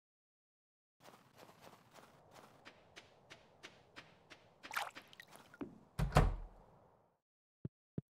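Footsteps crunch steadily through snow.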